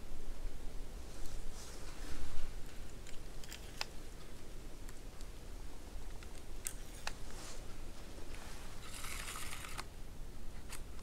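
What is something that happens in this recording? Clothing rustles close by.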